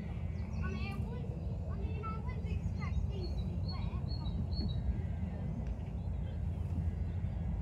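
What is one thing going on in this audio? A child's footsteps thud on a wooden beam.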